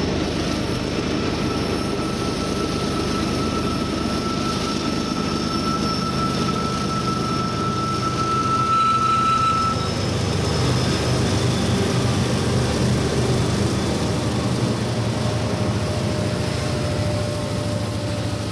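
Diesel locomotives rumble loudly as a freight train approaches and passes close by.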